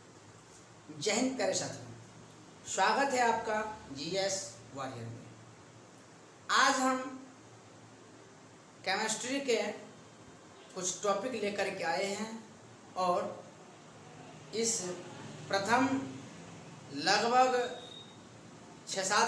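A young man speaks clearly and steadily close to the microphone, in short phrases with pauses.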